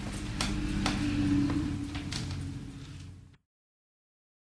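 An orchestra plays music outdoors, then stops abruptly.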